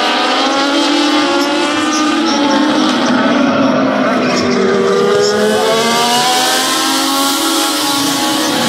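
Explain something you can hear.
Several race car engines roar loudly, rising and falling in pitch as the cars speed past.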